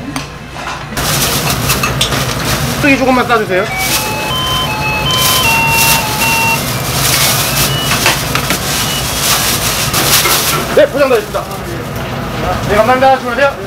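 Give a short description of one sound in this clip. Plastic bags rustle and crinkle.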